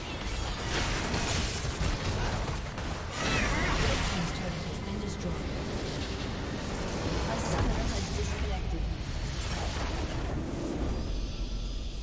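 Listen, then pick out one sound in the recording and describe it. Magic blasts and blows crash loudly in a fierce fight.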